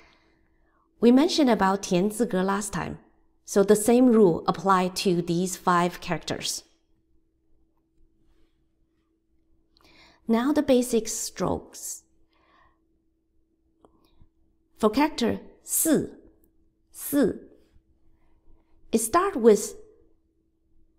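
A middle-aged woman speaks calmly and clearly into a microphone, as if teaching over an online call.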